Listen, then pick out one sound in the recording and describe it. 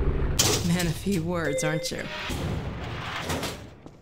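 A metal elevator gate rattles open.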